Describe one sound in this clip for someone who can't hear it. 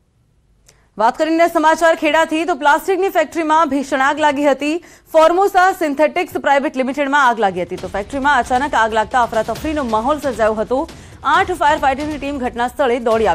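A young woman speaks clearly and briskly into a microphone.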